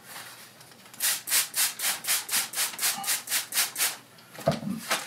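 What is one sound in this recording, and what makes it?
A spray bottle pumps out quick bursts of mist.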